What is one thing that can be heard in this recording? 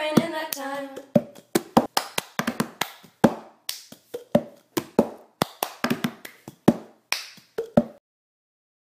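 Plastic cups clap and tap rhythmically on a hard surface.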